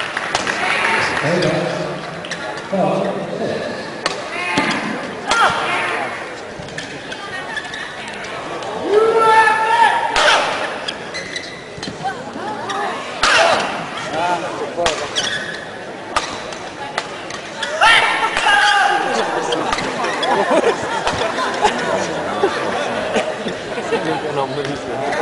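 Rackets sharply strike a shuttlecock back and forth in a large echoing hall.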